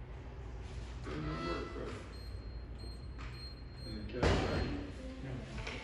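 An older man talks calmly across a counter, slightly muffled.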